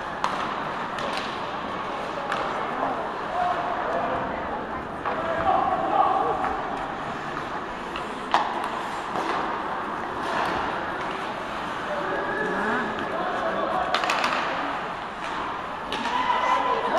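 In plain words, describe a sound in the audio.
Skates scrape and hiss across the ice in a large echoing arena.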